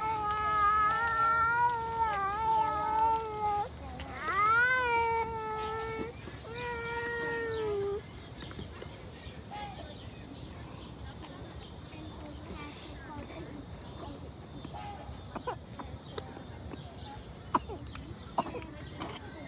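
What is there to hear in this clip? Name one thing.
A baby sucks and gulps from a bottle.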